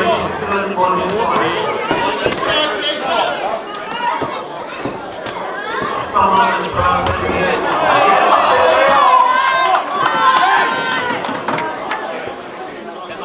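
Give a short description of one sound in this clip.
A crowd of men and women chatters and cheers in an echoing hall.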